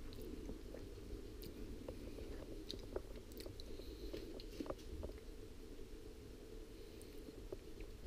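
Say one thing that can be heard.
A parrot nibbles and crunches a biscuit.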